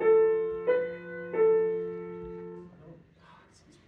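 A few piano notes ring out in a room.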